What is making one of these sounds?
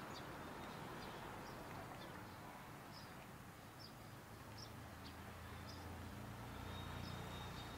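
Traffic rumbles steadily on a nearby street.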